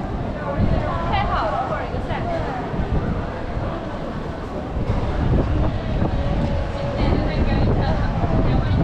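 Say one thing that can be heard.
A busy crowd chatters and murmurs all around outdoors.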